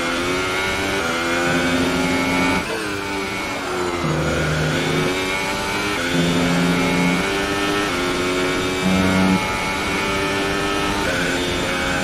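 Gear shifts click sharply as the engine pitch jumps.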